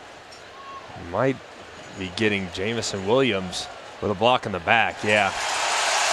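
A man announces through a loudspeaker, echoing across a stadium.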